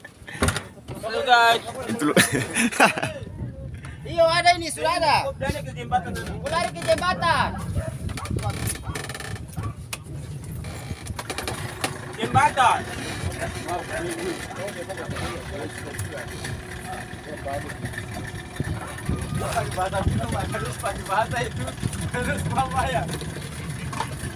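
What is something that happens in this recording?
Men talk to each other nearby.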